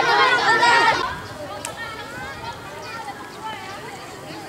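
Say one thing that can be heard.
A crowd of children talks far off outdoors.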